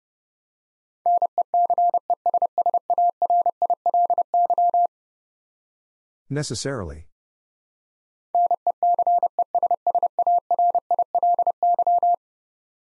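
Morse code beeps out in quick, even bursts of a single steady tone.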